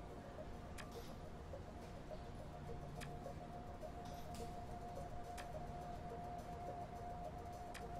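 Short menu clicks sound as a selection changes.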